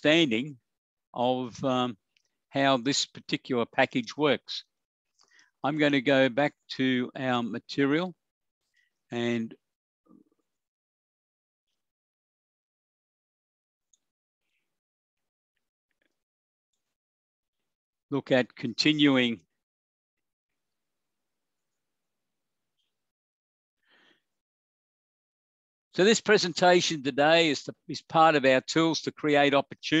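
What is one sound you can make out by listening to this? A man speaks calmly through a microphone in an online call, pausing often.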